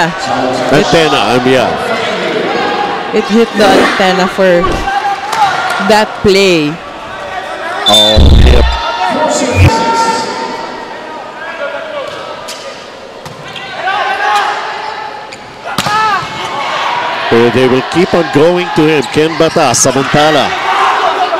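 A crowd cheers in a large hall.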